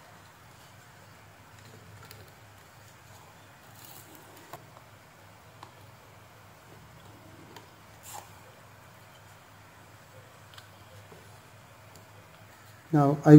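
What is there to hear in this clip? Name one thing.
Wires click and rustle as they are pushed into a plastic board.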